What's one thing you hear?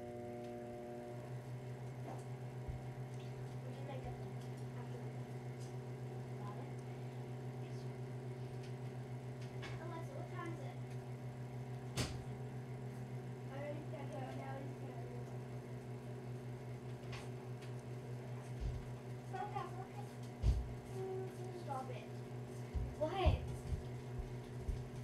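A microwave oven hums steadily as it runs.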